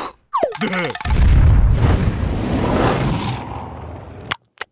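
A match flame flares and hisses.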